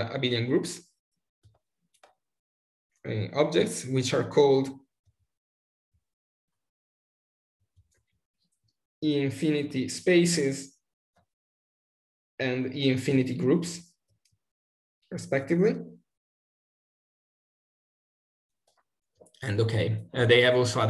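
A young man speaks calmly over an online call, pausing between phrases.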